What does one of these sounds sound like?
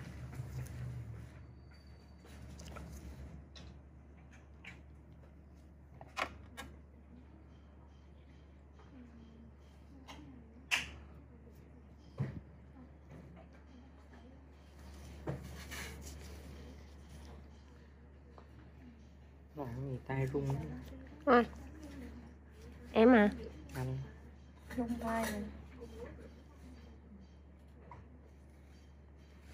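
Latex gloves rub and squeak faintly against skin.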